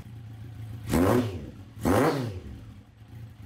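A motorcycle engine revs sharply twice and drops back.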